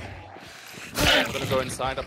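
A heavy blow lands with a wet, thudding impact.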